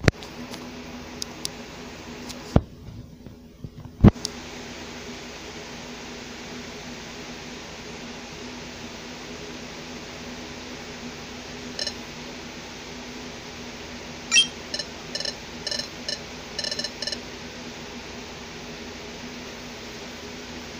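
Soft video game music plays steadily.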